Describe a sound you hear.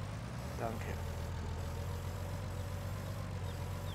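A tractor's front loader arms whir as they move.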